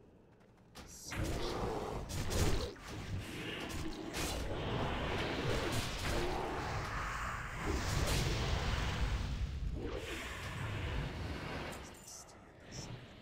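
Clashing blows and magic blasts sound in a video game battle.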